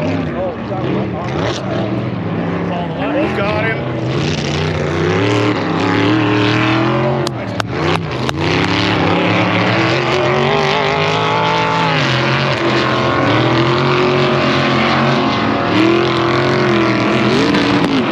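Off-road vehicle engines roar and rev up and down in the distance.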